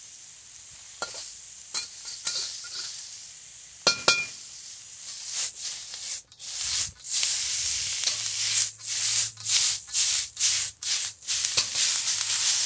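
A metal spatula scrapes and clanks against a pan.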